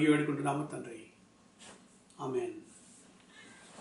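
A man speaks calmly and close up, in short phrases.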